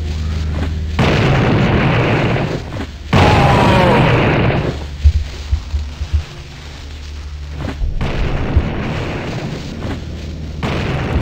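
A gun fires shot after shot.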